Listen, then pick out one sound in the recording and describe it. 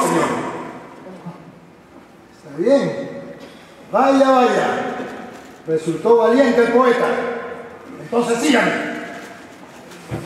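A man speaks loudly and dramatically in a large echoing hall.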